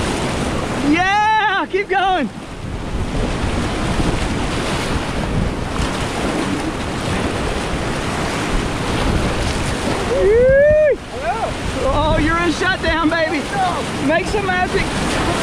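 A young man whoops and shouts nearby over the water.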